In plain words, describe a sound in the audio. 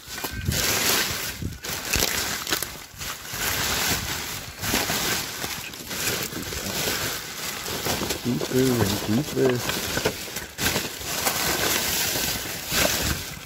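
A hand rummages through crinkling plastic bags.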